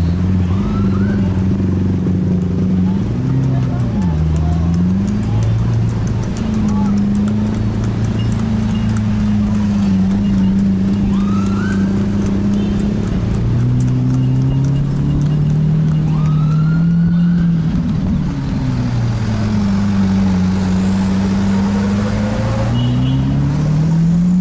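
A car engine hums from inside the car, its pitch rising and falling as it moves along.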